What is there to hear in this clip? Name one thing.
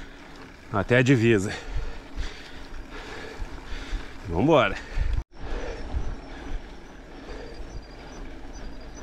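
Wind rushes past a moving bicycle.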